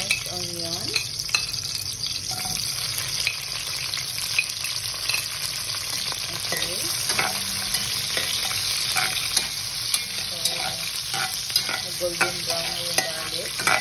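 Chopped vegetables sizzle in hot oil in a pan.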